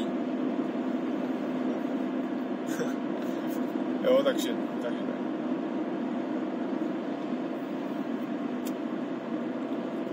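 A car engine hums steadily with road noise inside the car.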